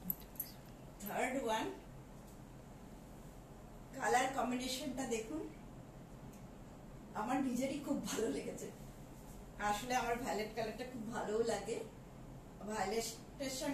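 A woman speaks calmly nearby in short phrases.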